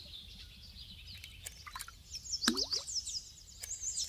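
A small object splashes into water.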